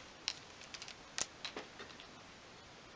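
Small wooden pieces click and tap together.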